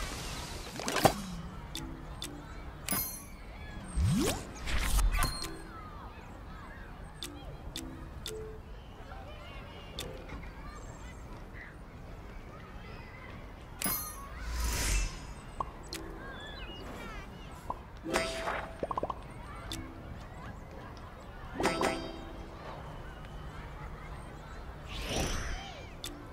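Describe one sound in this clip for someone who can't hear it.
Soft menu clicks and chimes sound now and then.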